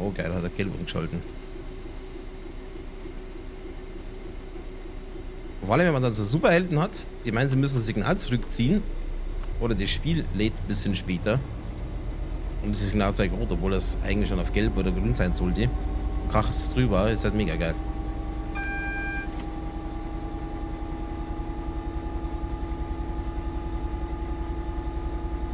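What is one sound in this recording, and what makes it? Train wheels rumble low on the rails.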